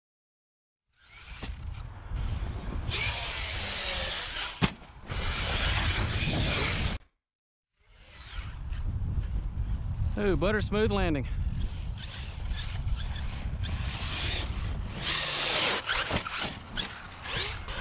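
A small electric motor whines and revs as a remote-control car speeds over dirt.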